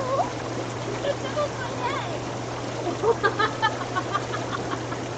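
Young women chat and laugh close by.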